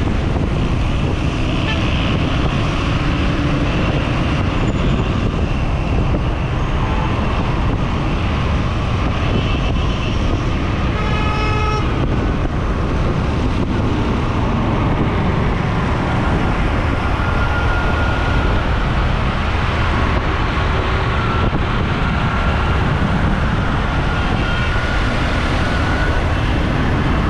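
A motorcycle engine hums steadily underneath.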